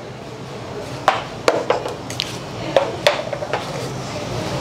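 A drink dispenser clicks and rattles.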